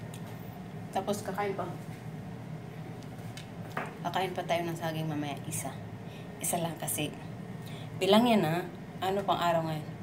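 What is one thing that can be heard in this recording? A woman speaks close by, casually and with animation.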